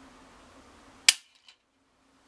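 A pistol's trigger snaps with a sharp click.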